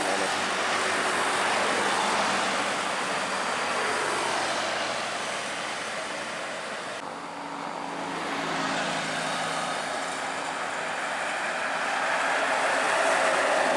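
A bus engine rumbles as it drives past.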